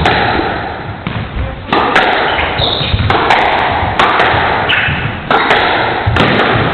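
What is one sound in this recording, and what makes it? A squash ball smacks sharply against racquets and walls, echoing in a hard-walled court.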